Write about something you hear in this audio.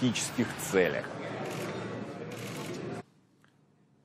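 A crowd murmurs softly in a large room.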